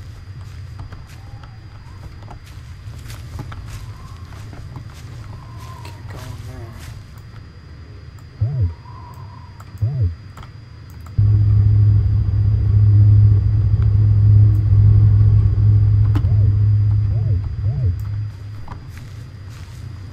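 Footsteps tread softly on hard ground.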